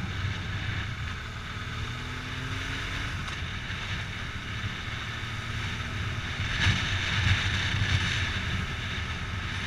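Wind rushes loudly against a helmet.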